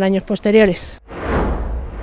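A woman speaks calmly into a close microphone.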